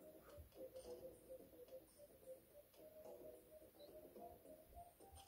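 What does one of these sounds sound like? Tinny game music plays from a tablet speaker.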